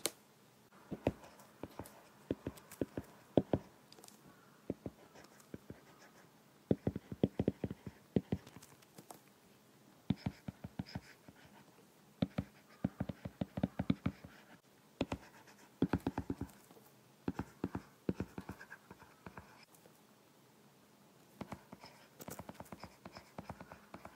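A stylus taps and scratches quickly on a glass tablet, close by.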